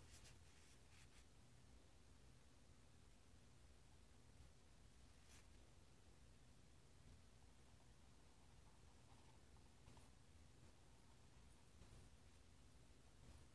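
A felt-tip marker squeaks faintly across paper.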